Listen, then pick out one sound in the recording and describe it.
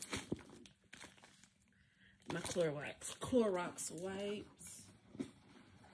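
A plastic wrapper crinkles in a hand.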